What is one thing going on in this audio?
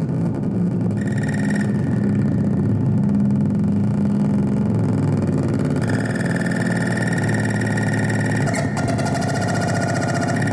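High electronic tones buzz in and out over the music.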